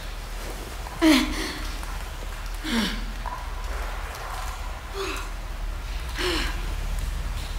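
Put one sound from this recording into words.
Heavy blows thud down hard, one after another.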